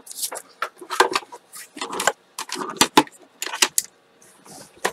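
A plastic machine clatters and clicks as it is moved by hand.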